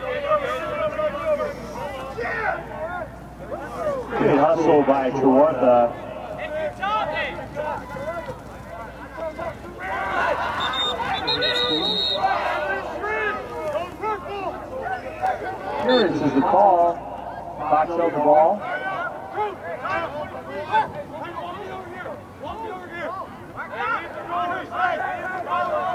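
Young men shout to each other across an open field.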